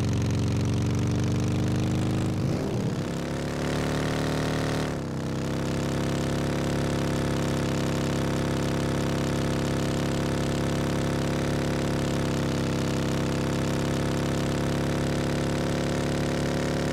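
A large truck engine roars steadily, its pitch dipping and rising as it shifts.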